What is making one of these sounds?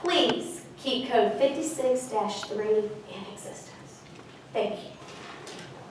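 A middle-aged woman speaks calmly into a microphone in a large room.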